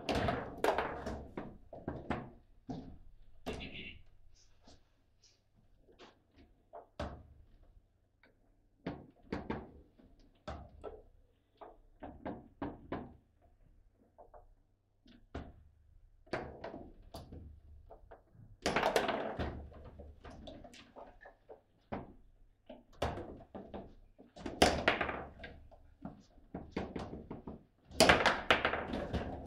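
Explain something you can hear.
A foosball ball clacks against plastic players and the table walls.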